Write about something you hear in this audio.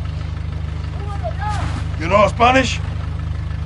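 A second man answers calmly close by.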